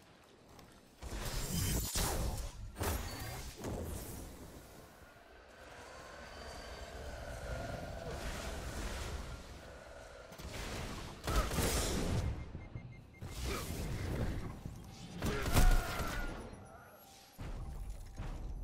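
Gunshots and blasts crack in loud bursts.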